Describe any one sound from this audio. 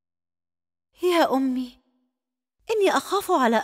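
A woman speaks in alarm.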